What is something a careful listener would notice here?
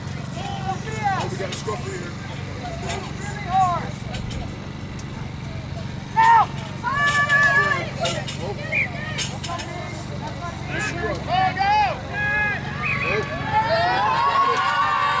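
Young women shout and call out loudly outdoors.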